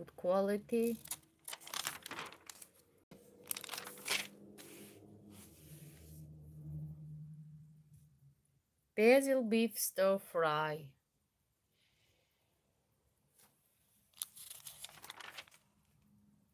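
Glossy magazine pages rustle as they are turned.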